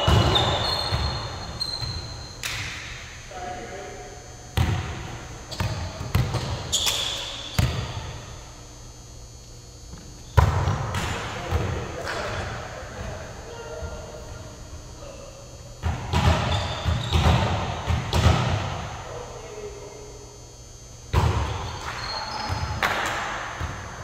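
A volleyball is struck with sharp slaps in a large echoing gym.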